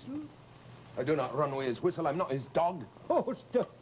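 An elderly man speaks, close by.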